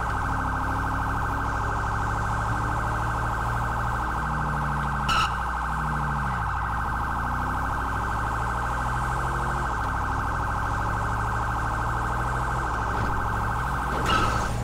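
A police siren wails steadily and rapidly.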